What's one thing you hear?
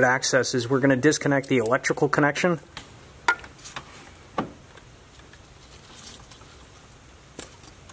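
Metal parts click and knock as a hand works on an engine.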